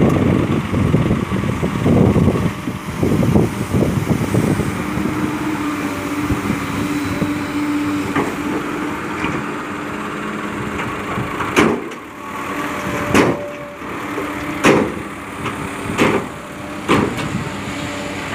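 A truck engine idles and runs steadily.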